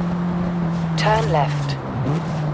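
Car tyres screech under hard braking.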